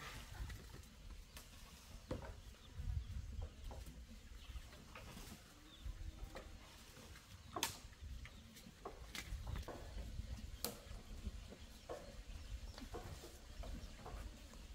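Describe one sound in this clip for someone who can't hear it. A long bamboo pole scrapes and clatters along the ground.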